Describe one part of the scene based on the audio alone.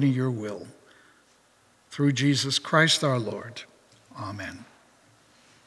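An elderly man speaks calmly into a microphone in an echoing room.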